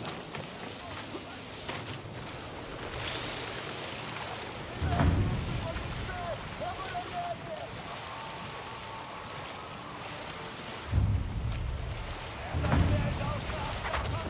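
Waves wash and splash.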